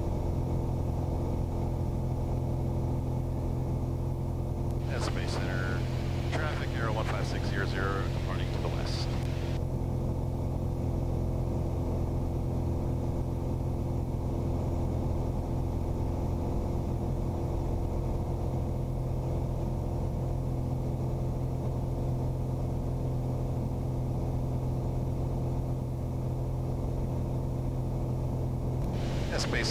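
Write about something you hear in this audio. An aircraft engine drones loudly and steadily from close by.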